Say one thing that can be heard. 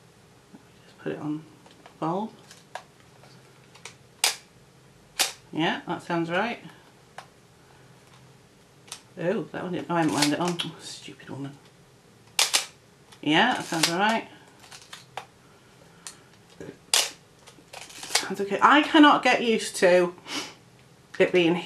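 A middle-aged woman talks calmly close by, in short phrases with pauses.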